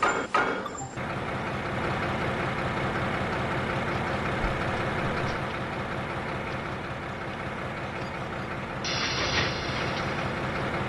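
A diesel locomotive engine rumbles steadily nearby.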